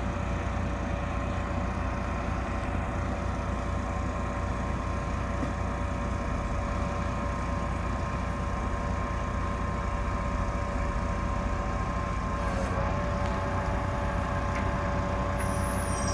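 A heavy truck's diesel engine rumbles steadily at idle.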